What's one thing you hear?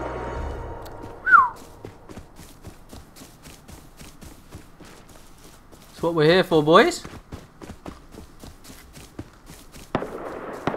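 Footsteps crunch through dry grass and gravel.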